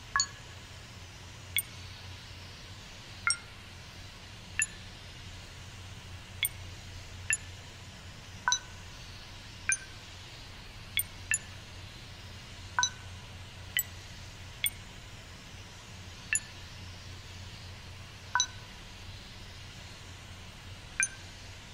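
Short electronic beeps and clicks sound as buttons on a keypad are pressed, one every second or two.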